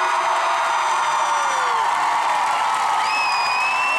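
A young man sings through a loudspeaker system.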